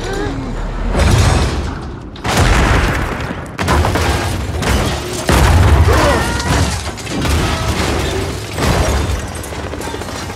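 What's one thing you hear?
A car tumbles and crashes loudly onto rocky ground.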